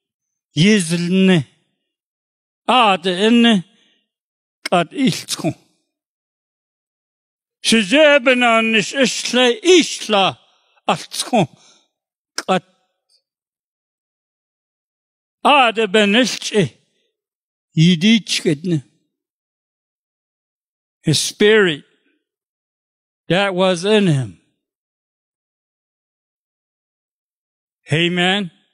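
An elderly man preaches with feeling into a microphone, in short bursts with pauses.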